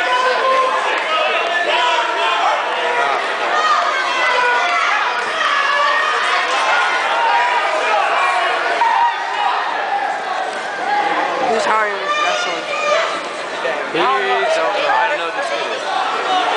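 A large crowd chatters and shouts in an echoing hall.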